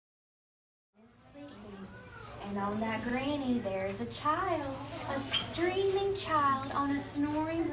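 A woman speaks in a lively, sing-song voice close by.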